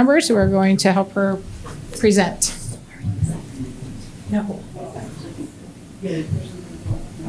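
A woman speaks through a microphone in a room.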